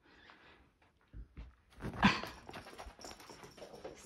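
A small dog thumps down onto the floor.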